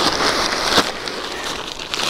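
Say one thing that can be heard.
Soil pours out of a bag onto the ground.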